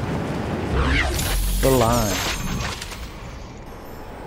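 A glider snaps open with a whoosh.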